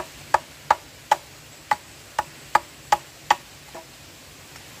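A blade chops sharply into wood in quick, regular strokes.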